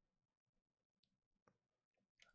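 Soft game menu blips sound.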